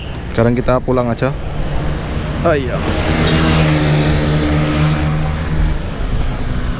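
A motorbike engine drones as it passes close by on a road.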